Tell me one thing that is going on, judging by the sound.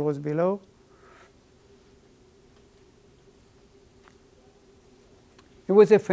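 An older man speaks calmly, with a long pause between phrases.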